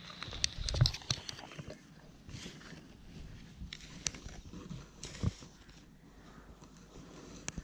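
A trowel digs and scrapes into dry sand.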